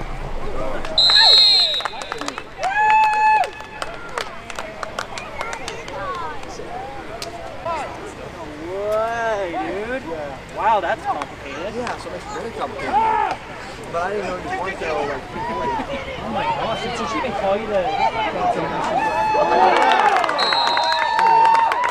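A referee's whistle blows shrill, short blasts several times.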